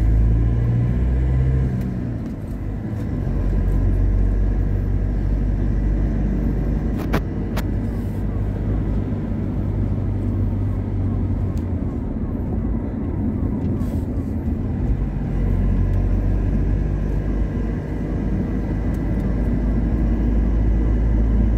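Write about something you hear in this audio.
Tyres roar steadily on a smooth road.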